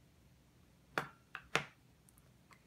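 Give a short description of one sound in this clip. Plastic game pieces click on a table.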